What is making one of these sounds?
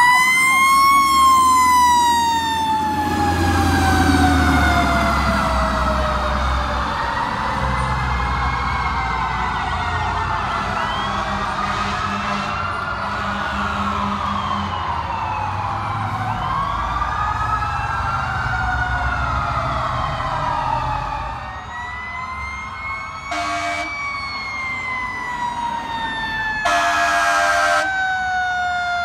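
A fire truck siren wails loudly, rising and falling.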